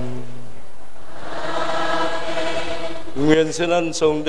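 A choir sings together.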